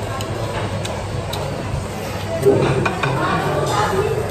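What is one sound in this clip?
A young man chews food close by.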